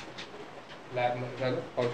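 Keyboards clatter with fast typing.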